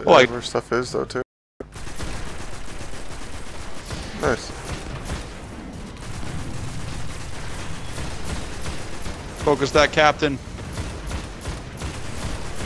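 A rifle fires repeated shots.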